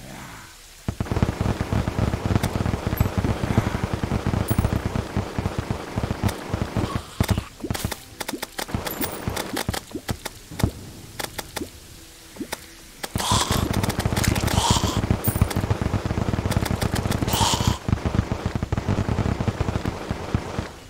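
A weapon fires rapid shots in a video game.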